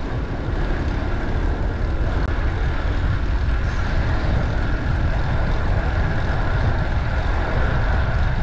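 Bicycle tyres hum on the road.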